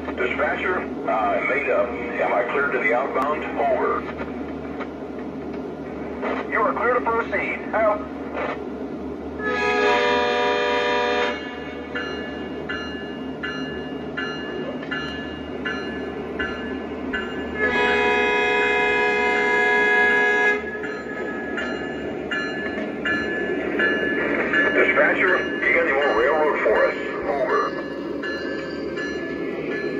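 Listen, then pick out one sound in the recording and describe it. A model diesel locomotive's engine rumbles steadily.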